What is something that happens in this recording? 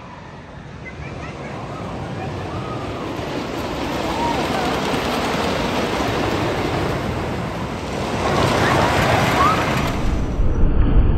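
A wooden roller coaster rumbles and clatters along its track, growing louder as it nears.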